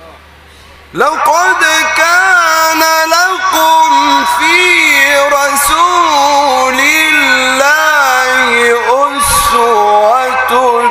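A man chants loudly in a long, wavering melody through a microphone and loudspeakers.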